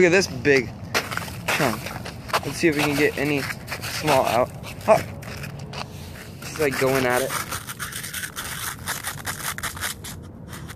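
A dog's paws crunch and scrape through icy snow.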